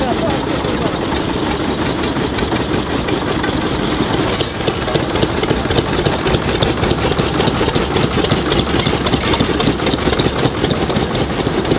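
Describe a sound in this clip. Tractor engines putter with fast popping knocks as they drive past.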